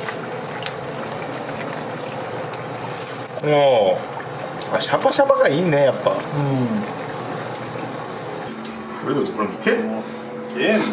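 Oil sizzles and crackles steadily as food deep-fries.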